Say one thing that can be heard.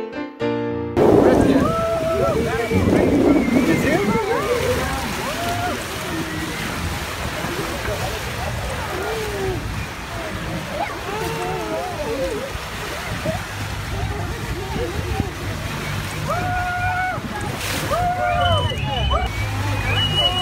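Adults on a boat call out excitedly.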